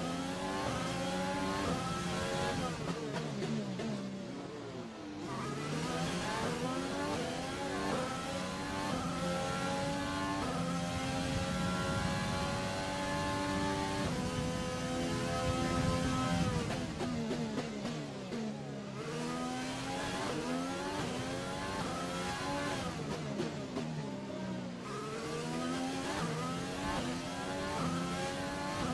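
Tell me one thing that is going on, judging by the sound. A racing car engine screams at high revs, rising through the gears and dropping sharply under braking.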